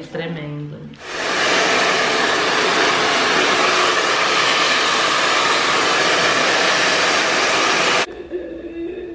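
A hair dryer blows loudly and steadily.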